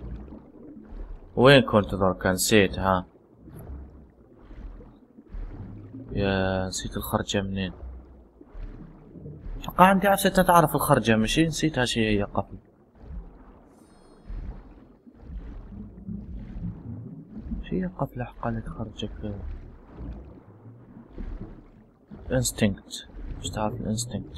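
A swimmer strokes through water with muffled splashing.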